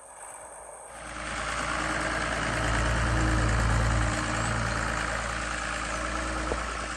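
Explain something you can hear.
A tractor engine rumbles loudly and steadily nearby.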